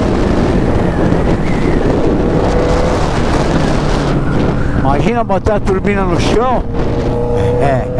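Wind rushes loudly across the microphone.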